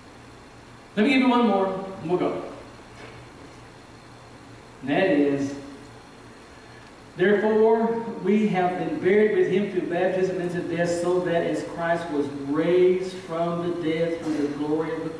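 A middle-aged man speaks with feeling into a microphone in a large echoing hall.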